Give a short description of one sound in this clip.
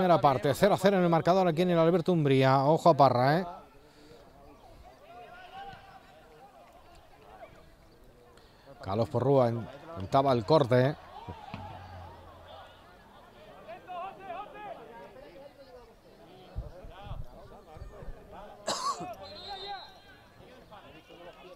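Football players shout to each other across an open field, far off.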